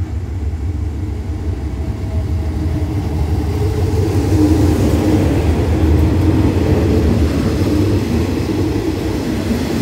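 A diesel train engine rumbles loudly as a train pulls in.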